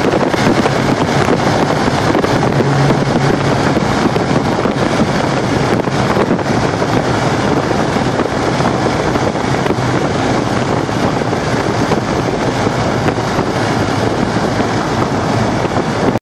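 Wind and tyre noise roar steadily inside a moving car.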